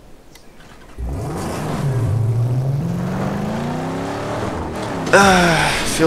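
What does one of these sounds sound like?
A car engine starts up and revs loudly.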